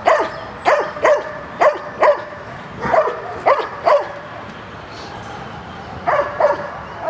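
A large dog barks loudly and repeatedly, close by.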